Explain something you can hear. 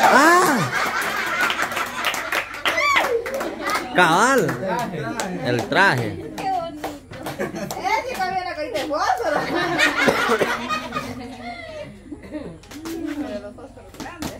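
A young woman talks and laughs cheerfully nearby.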